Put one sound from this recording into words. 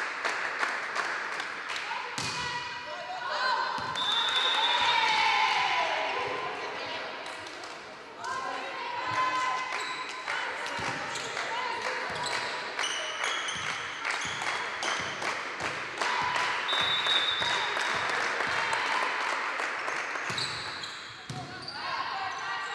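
Young women shout and call out to one another.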